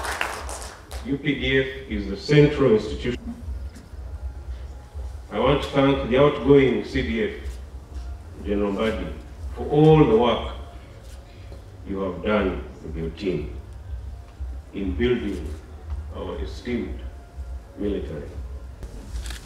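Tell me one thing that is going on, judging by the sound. A man speaks calmly and formally through a microphone and loudspeakers, with pauses between phrases.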